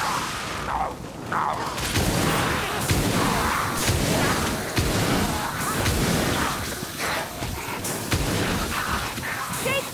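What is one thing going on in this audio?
Metal hammers clang and thud against enemies in a busy fight.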